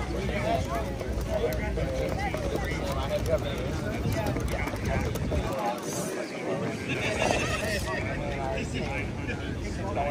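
Several men chat casually nearby outdoors.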